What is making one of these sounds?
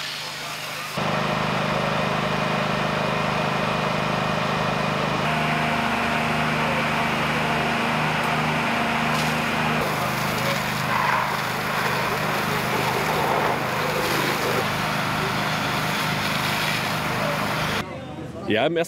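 A fire engine pump runs with a steady low hum.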